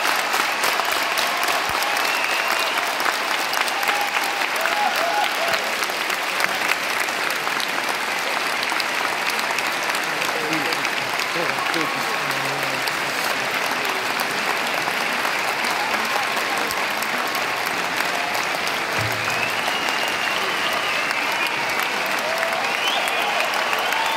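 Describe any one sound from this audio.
A large crowd murmurs and chatters in a vast echoing arena.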